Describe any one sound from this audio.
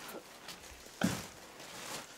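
A heavy sack thumps down onto a counter.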